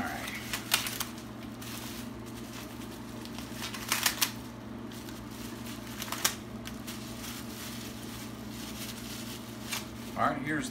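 Plastic wrapping crinkles and rustles in a man's hands.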